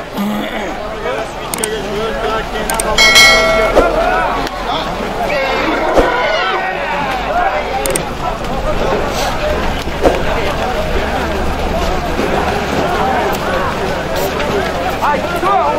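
A large outdoor crowd of men shouts and chatters throughout.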